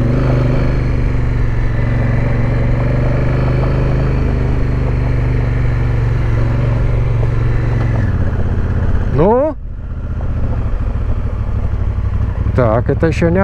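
A motorcycle engine hums steadily and revs up sharply now and then.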